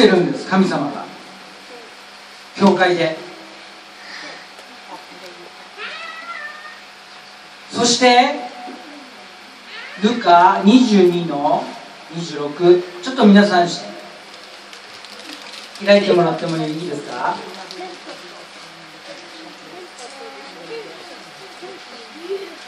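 A middle-aged man speaks into a microphone over loudspeakers, with pauses, in a room with some echo.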